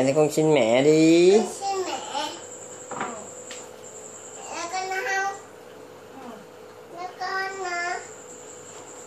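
A young child chatters and squeals close by.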